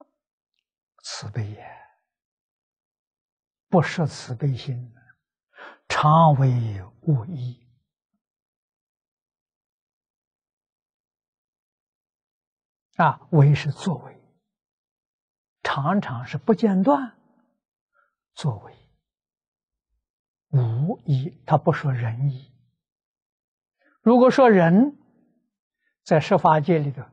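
An elderly man lectures calmly into a clip-on microphone, with pauses between phrases.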